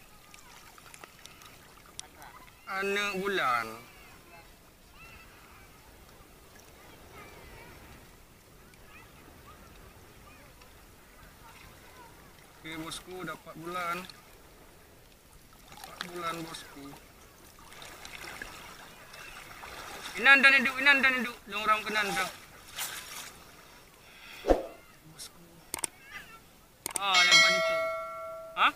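A wet fishing net rustles as hands handle it.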